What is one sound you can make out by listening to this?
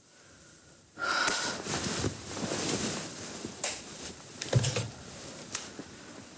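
Bedsheets rustle as a woman moves in bed.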